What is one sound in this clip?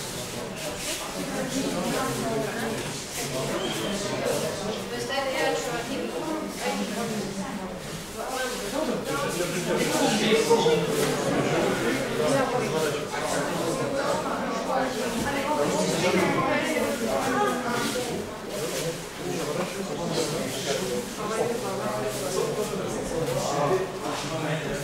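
A man talks calmly in an echoing hall.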